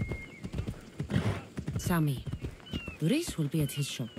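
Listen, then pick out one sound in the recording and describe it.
A horse's hooves clop on the ground.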